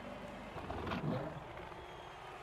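A beast lets out a loud snarling roar.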